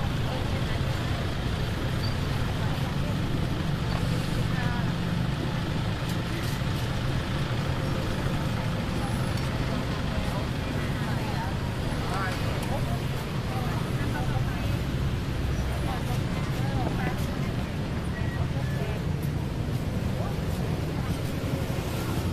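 Street traffic rumbles steadily nearby.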